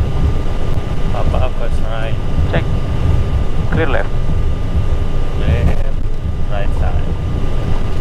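A man speaks briefly over a headset radio.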